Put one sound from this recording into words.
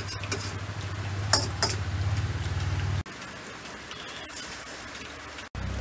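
A spatula scrapes and stirs food in a sizzling pan.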